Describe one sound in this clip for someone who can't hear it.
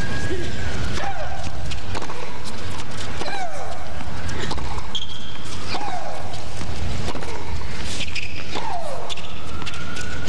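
A tennis ball is struck back and forth with sharp pops of the racket.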